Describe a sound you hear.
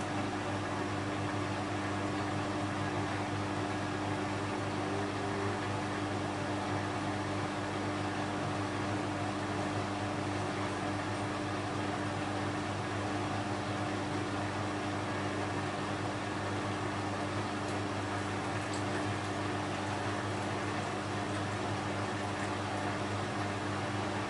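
Water and laundry slosh inside a washing machine drum.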